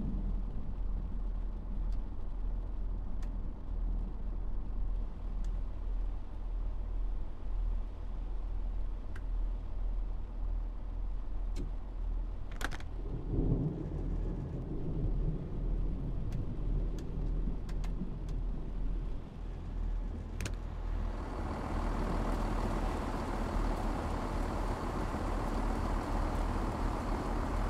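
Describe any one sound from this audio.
A train's engine hums low and steady.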